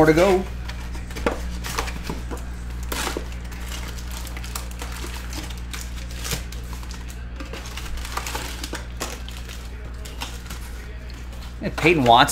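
Cardboard packaging and foil packs rustle and crinkle in hands.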